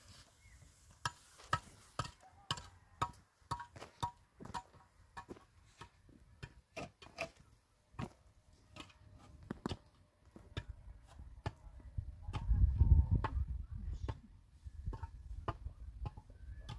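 Concrete blocks knock and clack against each other.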